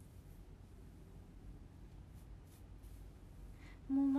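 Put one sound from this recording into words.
Fingers rustle through long hair close by.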